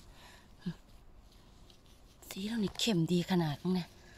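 Moss rustles and tears as a mushroom is pulled from the ground.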